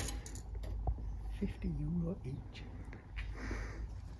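Metal folding chairs clatter as they are moved.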